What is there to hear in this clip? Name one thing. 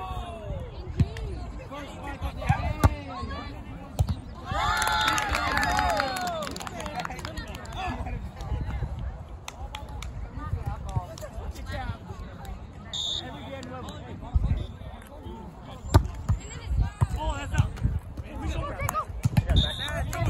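A volleyball is struck with sharp thuds.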